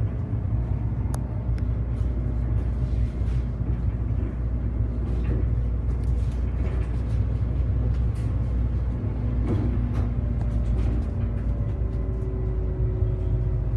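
The bus rattles and creaks as it drives.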